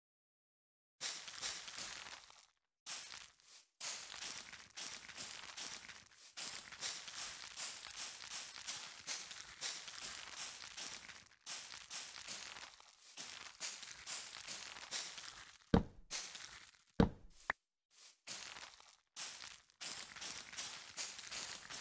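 Magical sparkling sounds crackle in quick repeated bursts.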